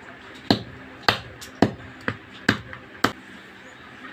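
Wooden sticks knock sharply against each other.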